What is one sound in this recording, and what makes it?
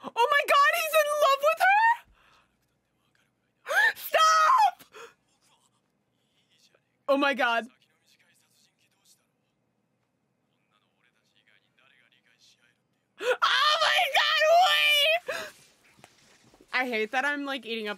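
A young woman talks excitedly close to a microphone.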